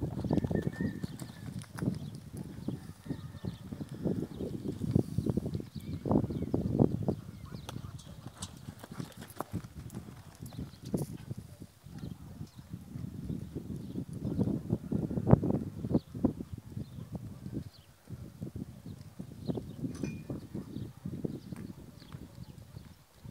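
A horse canters with muffled hoofbeats on soft sand.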